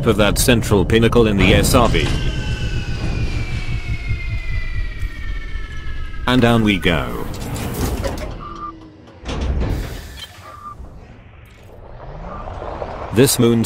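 A spacecraft engine hums with a low rumble.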